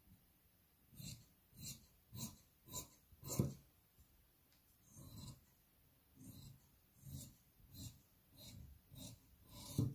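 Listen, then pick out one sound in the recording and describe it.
Fabric shears snip through crepe fabric.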